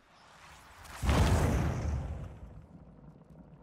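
A torch bursts into flame with a loud whoosh.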